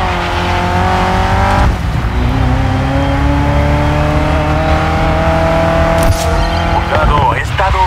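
A race car engine roars at high revs, shifting up through the gears.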